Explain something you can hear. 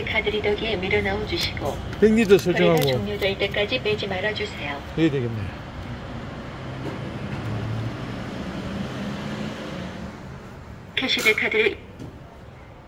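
A recorded woman's voice gives prompts through a machine's small loudspeaker.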